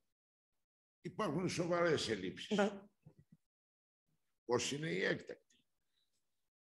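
A man speaks calmly through a microphone in an online meeting.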